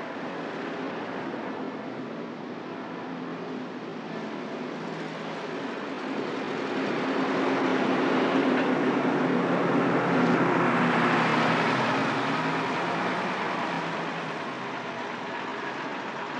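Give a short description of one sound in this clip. Traffic hums along a street.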